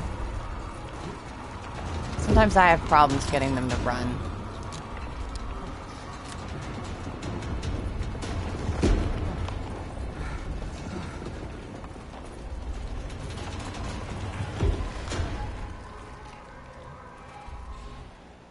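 Footsteps thud steadily on wooden floors and stairs.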